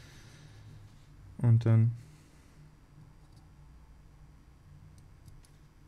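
Thin wires rustle and tick softly as fingers handle them.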